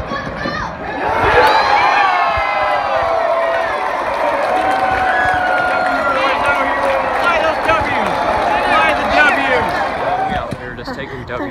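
A stadium crowd cheers and shouts loudly.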